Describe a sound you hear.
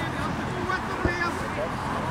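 A foot kicks a football with a dull thump.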